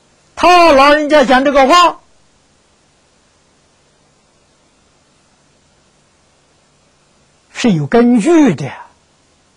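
An elderly man speaks calmly and closely into a microphone, with long pauses.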